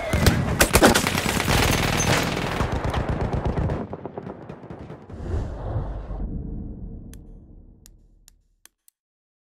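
Loud gunfire and explosions roar, then fade away.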